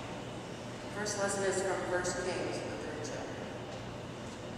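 A woman sings at a distance in a large echoing hall.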